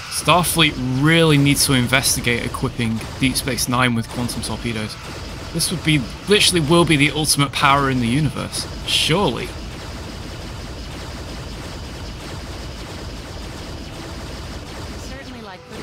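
Energy weapons fire in rapid zapping bursts.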